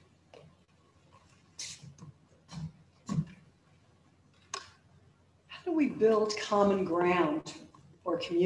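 An older woman speaks calmly into a microphone, heard through a loudspeaker, with pauses.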